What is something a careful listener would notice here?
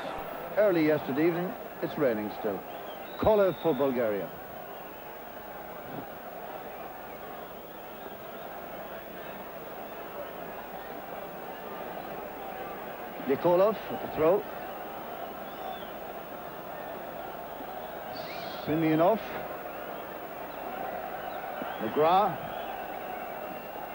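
A stadium crowd murmurs steadily outdoors.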